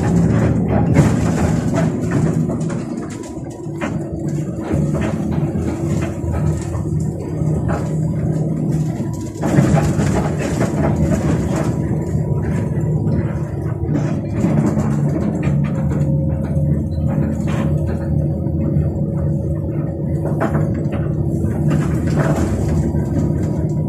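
A bus rattles and shakes over the road.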